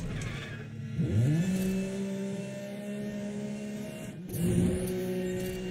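A sports car engine rises in pitch after each gear change.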